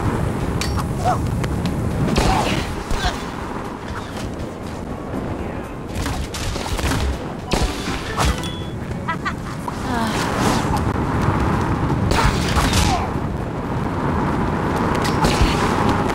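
Game fighting sounds clash and thump with short hits.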